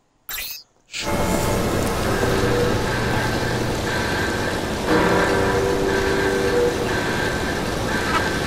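Fires crackle and roar steadily.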